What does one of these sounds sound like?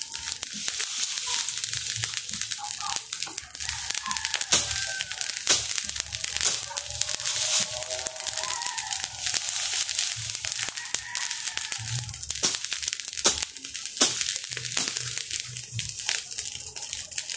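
Wind rustles through the grass outdoors.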